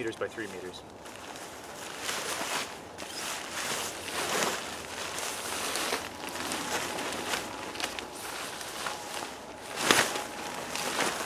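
A nylon sheet rustles and flaps as it is shaken out.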